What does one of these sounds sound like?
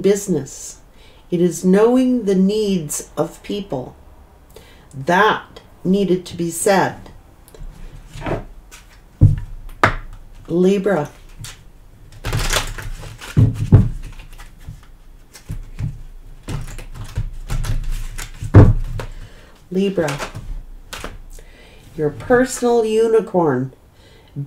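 A middle-aged woman speaks calmly and closely into a microphone.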